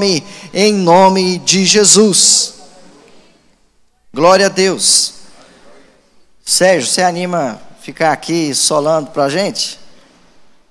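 A man speaks with animation into a microphone, his voice amplified in a hall.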